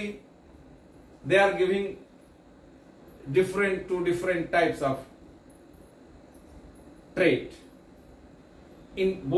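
An older man speaks calmly and clearly into a close microphone, in short phrases with pauses.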